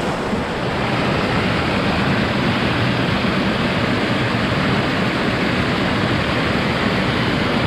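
A small waterfall rushes and splashes steadily over rocks close by.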